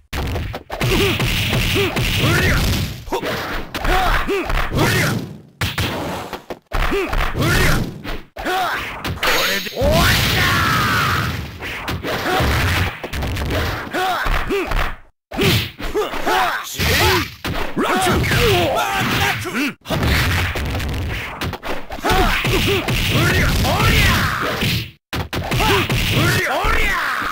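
Upbeat game music plays throughout.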